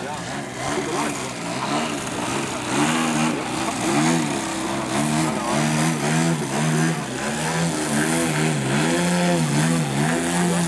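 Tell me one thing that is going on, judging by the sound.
A model plane's engine buzzes loudly, its pitch rising and falling as the plane hovers and twists.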